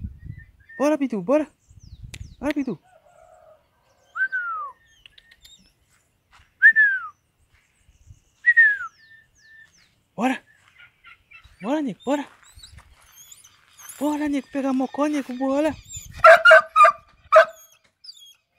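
A dog barks sharply nearby, several times.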